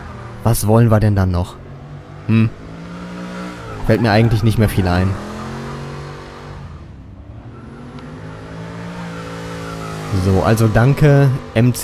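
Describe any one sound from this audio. A car engine roars and revs hard, rising and falling as gears change.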